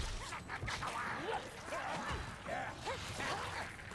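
A heavy weapon swings and strikes with a dull thud.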